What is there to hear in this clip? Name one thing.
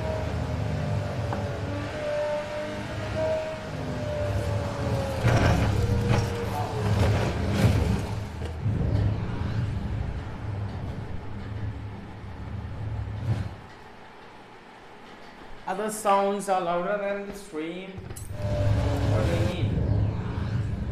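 A racing car engine roars and drones steadily.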